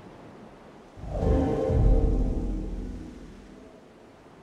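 A short musical fanfare plays and fades out.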